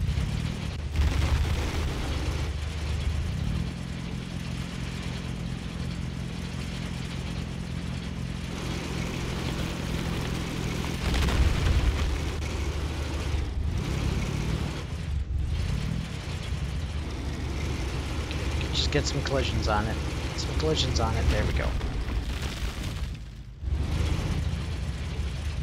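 An engine hums steadily at a low pitch.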